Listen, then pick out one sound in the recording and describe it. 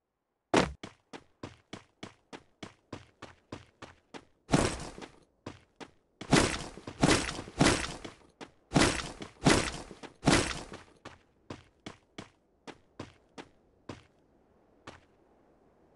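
Quick footsteps thud on grass.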